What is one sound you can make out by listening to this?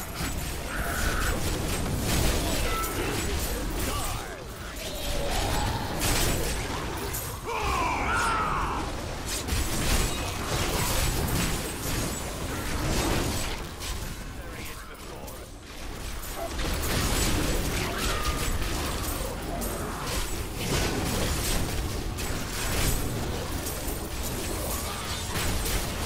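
Fiery spell blasts and explosions crash again and again.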